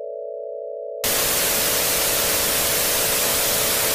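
Loud television static hisses.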